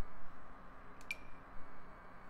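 A soft menu click sounds.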